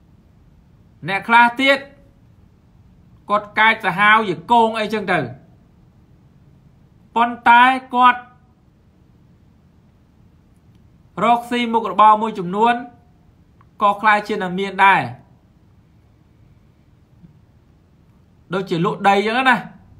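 A young man speaks calmly in short phrases, heard through an online call.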